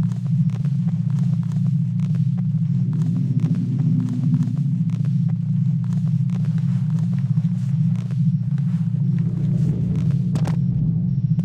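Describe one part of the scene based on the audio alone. Boots clank on metal ladder rungs in a steady climbing rhythm.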